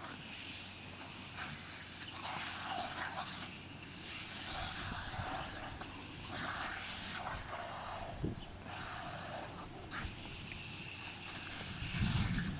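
A dog splashes in wet grass.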